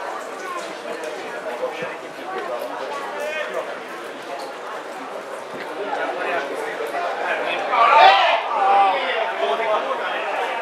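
Players shout to one another across an open outdoor field.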